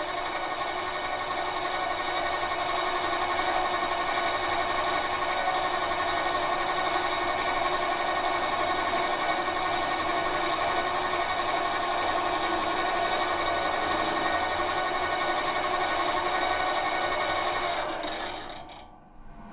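A metal lathe whirs steadily as a cutting tool shaves metal.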